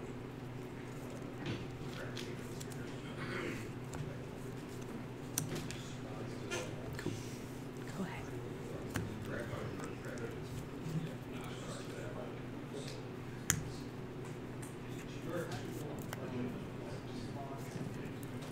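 Playing cards tap and slide on a cloth mat.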